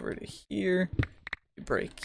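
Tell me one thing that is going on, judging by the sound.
A block cracks and breaks apart.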